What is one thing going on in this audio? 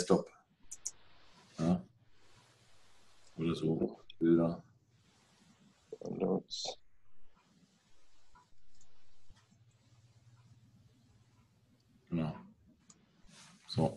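A man speaks calmly in short phrases, heard through an online call.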